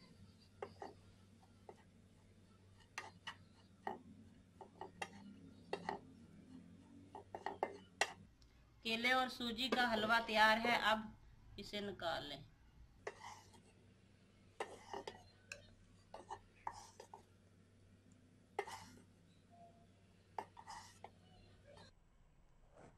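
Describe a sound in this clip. A wooden spatula scrapes and taps against a metal pan.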